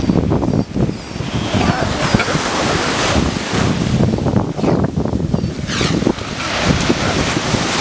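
Sea lions bark and bellow close by.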